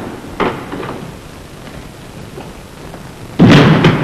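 A door shuts.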